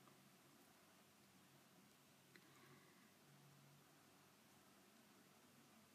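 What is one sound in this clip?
A young woman speaks calmly and quietly, close by.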